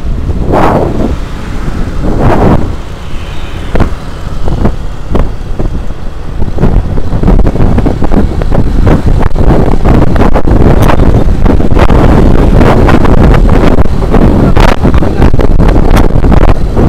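A motorbike engine hums steadily while riding along a road.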